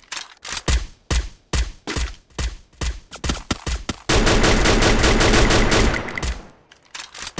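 A rifle fires repeated shots, then a rapid burst.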